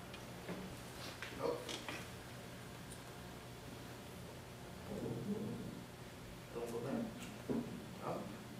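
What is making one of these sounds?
A young man speaks nearby in short bursts.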